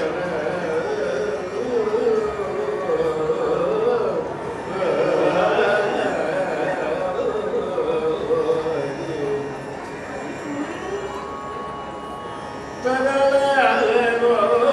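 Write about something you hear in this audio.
A man sings with feeling into a microphone.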